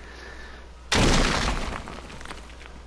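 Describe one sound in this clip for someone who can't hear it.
Stone blocks crash and crumble as a wall is torn down.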